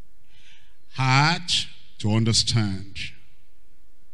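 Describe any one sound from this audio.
An elderly man speaks with emphasis, in short bursts.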